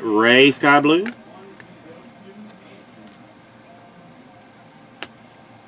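Trading cards rustle and tap softly as they are sorted by hand.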